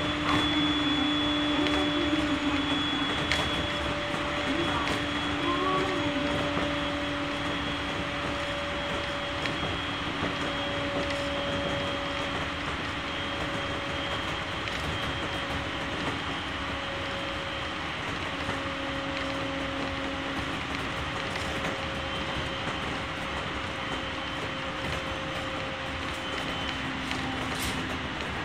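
An electric motor hums and whines steadily.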